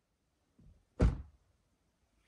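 A car door slams shut nearby.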